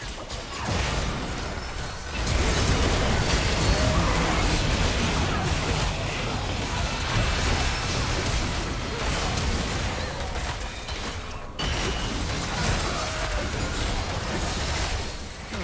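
Weapons clash and strike in a video game battle.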